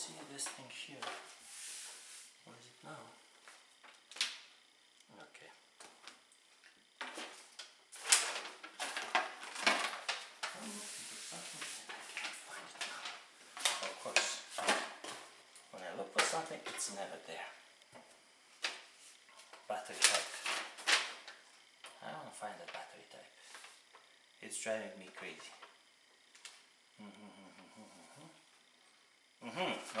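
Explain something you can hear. Paper rustles and crinkles as a man unfolds a sheet.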